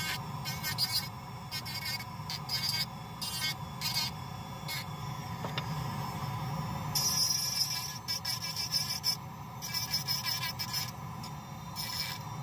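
An air nozzle blows in short hissing bursts.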